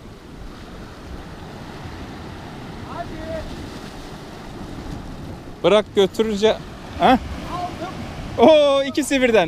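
Waves wash and splash against rocks.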